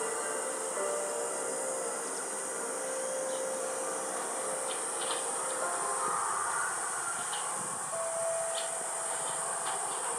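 A small animal nibbles and chews leaves up close.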